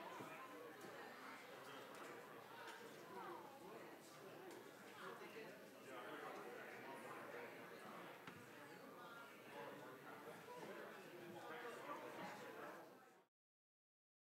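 Several men and women chat at once in a room that echoes a little.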